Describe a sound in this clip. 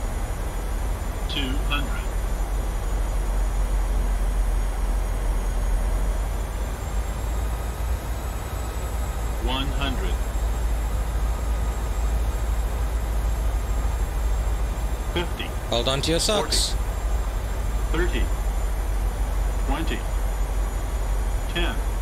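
Jet engines hum steadily.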